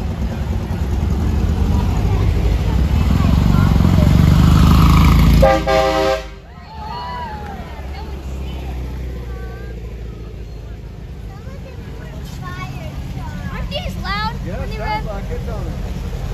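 Old car engines rumble loudly as they drive slowly past, close by.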